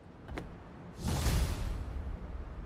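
A figure lands with a heavy thud and a rush of air.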